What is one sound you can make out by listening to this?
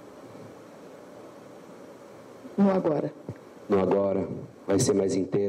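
A woman answers calmly through a microphone.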